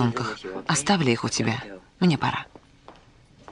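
An elderly woman speaks warmly and with animation close by.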